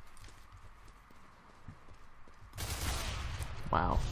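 A gunshot rings out close by.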